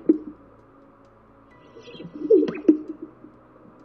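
A bird makes deep bubbling and popping calls close by.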